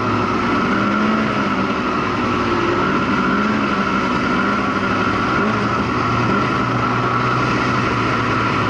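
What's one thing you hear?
A snowmobile engine roars steadily up close.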